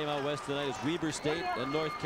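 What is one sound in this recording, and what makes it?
A basketball bounces on a wooden floor.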